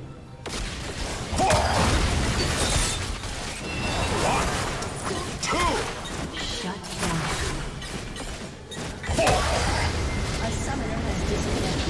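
Magic spells crackle and whoosh during a video game battle.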